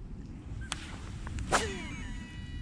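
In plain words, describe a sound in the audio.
A fishing rod swishes through a cast.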